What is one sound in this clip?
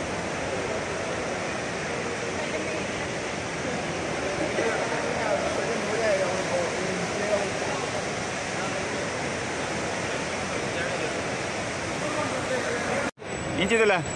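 A large echoing hall hums with distant crowd chatter.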